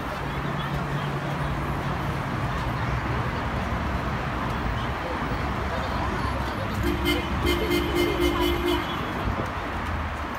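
Traffic hums steadily nearby.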